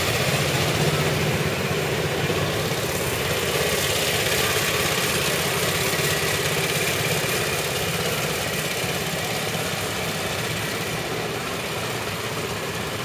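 A small car engine putters steadily nearby.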